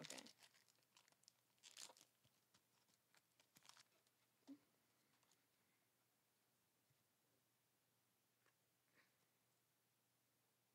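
Trading cards rustle and flick as they are handled close by.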